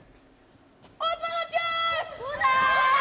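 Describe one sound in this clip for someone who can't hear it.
A young boy shouts out loudly.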